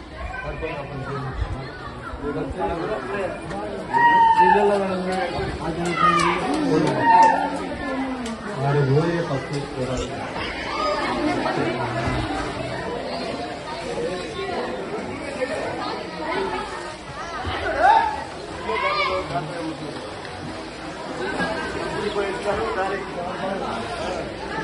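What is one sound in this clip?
A crowd of men, women and children chatter nearby, outdoors.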